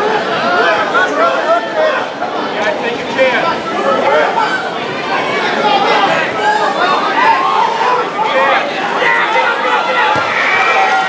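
A crowd of people talk and call out in a large echoing hall.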